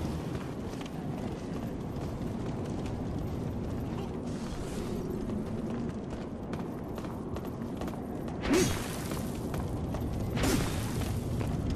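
Armoured footsteps run quickly over stone.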